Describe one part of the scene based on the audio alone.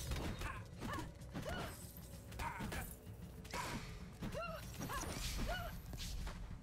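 Magic spells whoosh and zap in quick bursts.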